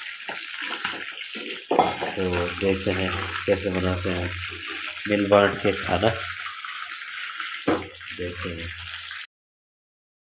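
Hot oil sizzles and crackles in a frying pan.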